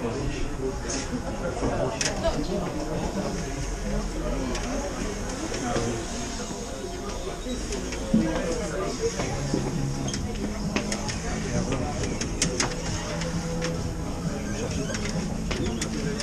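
Stiff poster boards clack and rattle as they are flipped through.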